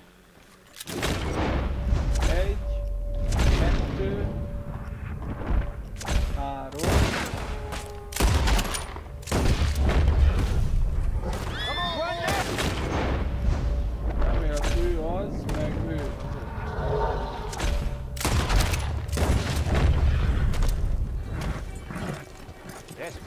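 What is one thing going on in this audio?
Gunshots ring out repeatedly, with loud echoing cracks.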